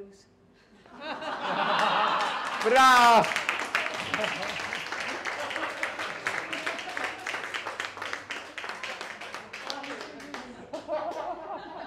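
An elderly man laughs loudly and at length into a microphone.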